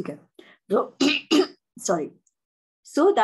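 A woman coughs.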